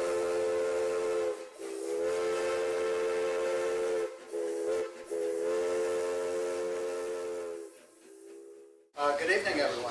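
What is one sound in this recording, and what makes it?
A steam locomotive whistle blows in long, steady blasts.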